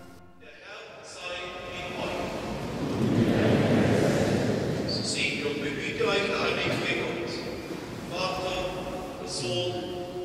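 A crowd of older men and women sings together in a large echoing hall.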